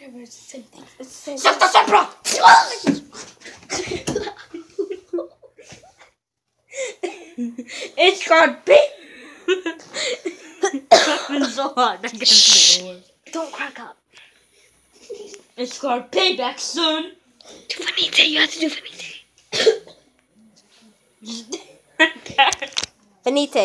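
Young boys talk and laugh loudly close by.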